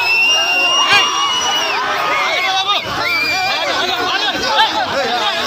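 A crowd of men shouts and chants outdoors.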